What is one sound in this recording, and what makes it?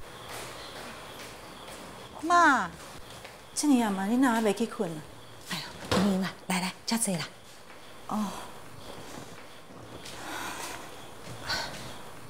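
Footsteps pad across a hard floor.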